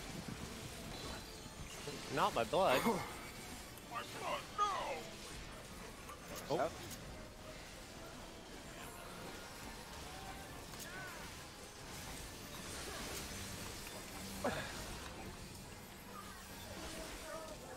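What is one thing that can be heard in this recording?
Magic spell effects whoosh and chime.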